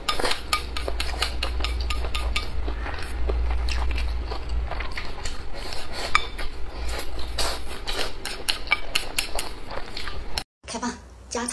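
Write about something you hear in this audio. A young woman slurps and chews noodles loudly and wetly, close up.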